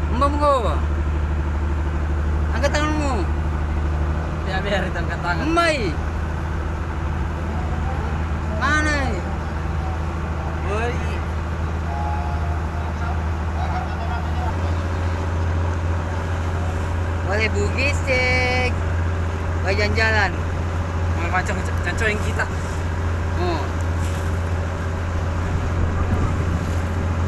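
A large ship's engine rumbles low and steady across the water.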